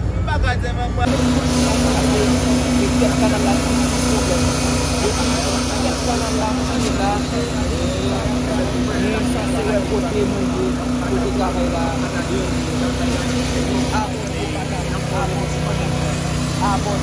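Men talk among themselves nearby.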